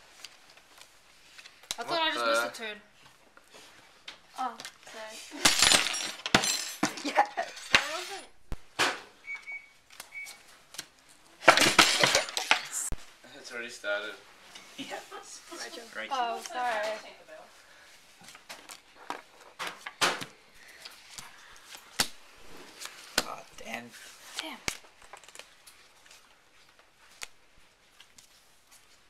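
Playing cards slap down onto a wooden table.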